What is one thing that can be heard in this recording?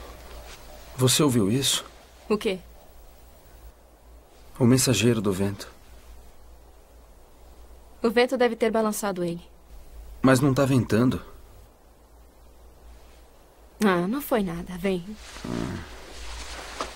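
A young man speaks softly and closely, in short phrases with pauses.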